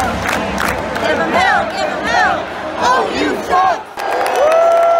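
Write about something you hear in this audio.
A large crowd sings along loudly.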